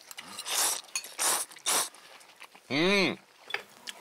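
A man slurps noodles noisily.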